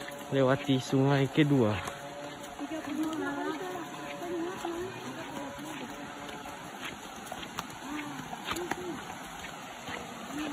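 A shallow stream trickles over rocks.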